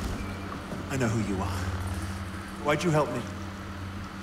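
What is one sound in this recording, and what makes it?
A young man asks a question in a tense voice.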